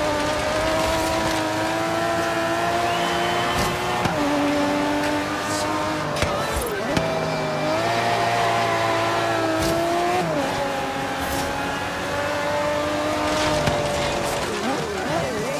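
A race car engine roars at high revs, shifting gears up and down.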